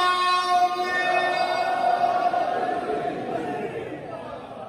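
A man sings loudly into a microphone, holding a long note, in a large echoing hall.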